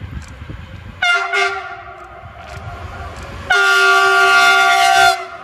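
A train sounds its horn loudly, in long blasts.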